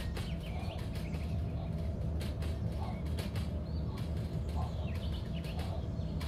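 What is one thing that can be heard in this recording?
Wagon wheels clack over rail joints.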